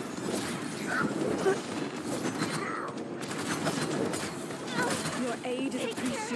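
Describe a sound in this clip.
Game weapons fire in rapid bursts.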